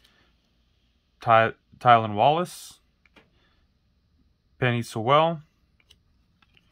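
Trading cards slide and flick softly against each other in hand.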